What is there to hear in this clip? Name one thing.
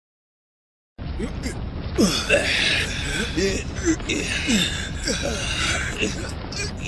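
Men grunt and strain as they haul on ropes.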